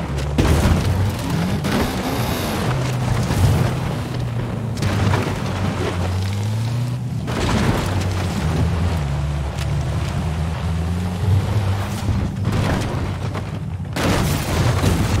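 Tyres crunch over rough ground.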